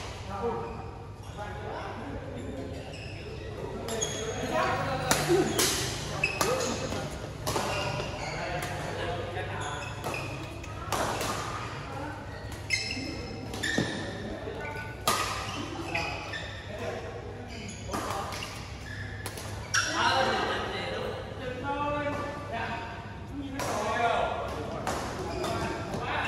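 Sneakers squeak and patter on a court floor.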